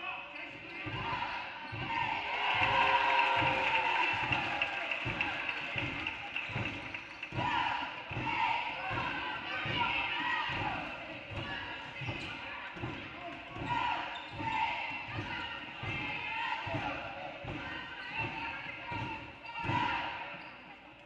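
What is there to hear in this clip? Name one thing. A basketball bounces rhythmically on a hard court in an echoing gym.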